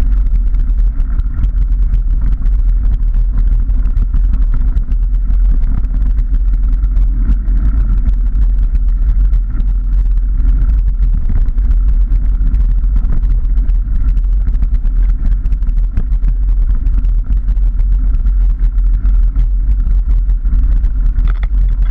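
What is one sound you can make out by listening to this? Wind rumbles loudly across the microphone.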